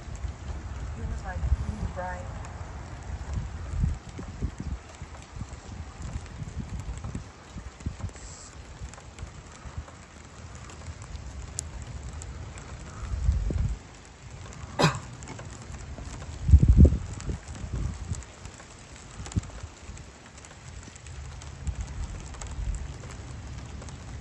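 Wind gusts rumble outdoors in uneven bursts.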